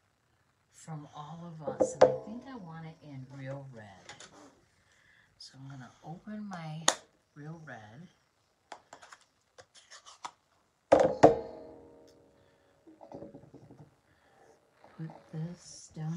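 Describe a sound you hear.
A clear plastic block taps down on a table.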